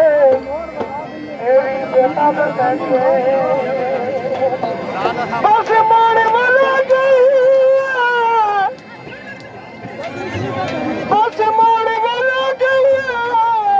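A man sings loudly through a megaphone.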